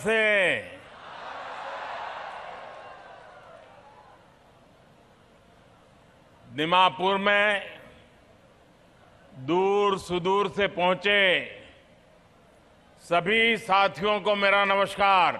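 An elderly man speaks forcefully into a microphone over a loudspeaker, pausing between phrases.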